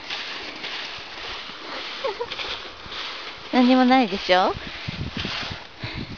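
A dog's paws crunch on snow.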